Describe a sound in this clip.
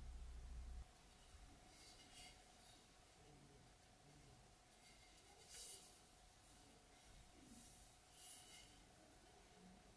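Hands handle a metal tool, making faint soft taps and rustles.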